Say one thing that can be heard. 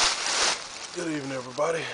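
A man speaks close by in a low, calm voice.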